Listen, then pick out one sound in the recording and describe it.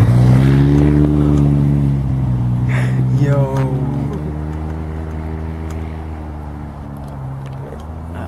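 A young man talks close by.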